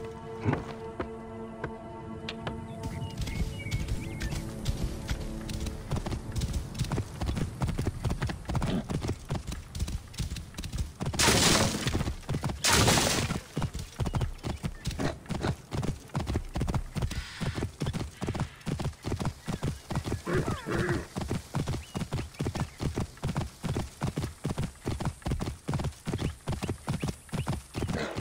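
Horse hooves thud rapidly in a steady gallop.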